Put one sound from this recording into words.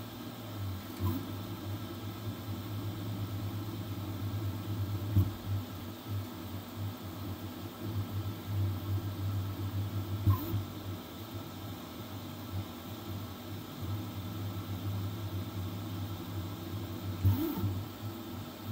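A printer's motors whine in short rising chirps now and then.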